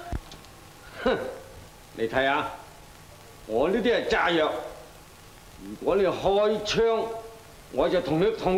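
A man speaks menacingly, close by.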